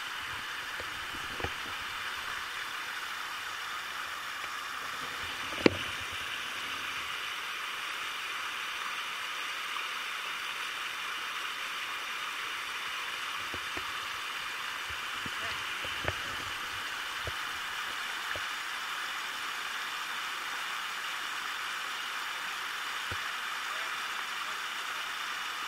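A river rushes steadily over rapids close by.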